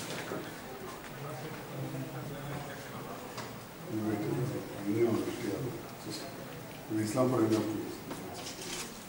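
A middle-aged man talks on a mobile phone.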